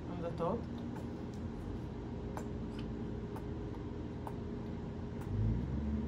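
A squeeze bottle squirts sauce.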